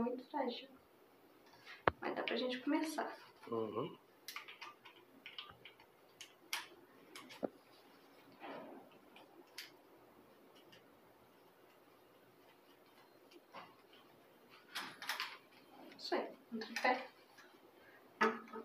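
Plastic parts of a tripod click and clack as hands fold it.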